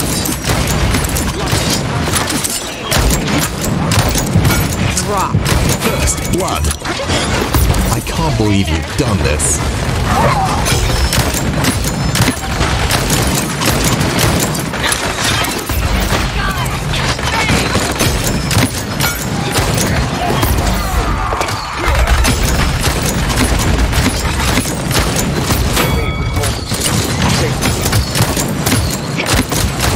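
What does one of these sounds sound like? Pistol shots fire rapidly, over and over.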